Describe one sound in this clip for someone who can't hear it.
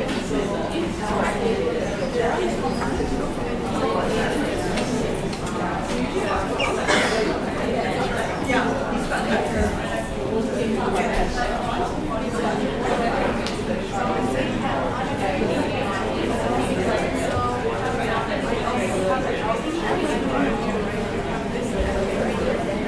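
A man speaks steadily into a microphone, heard through a loudspeaker in a room.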